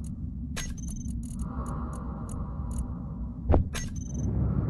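Short electronic clicks and blips sound as menu items are picked.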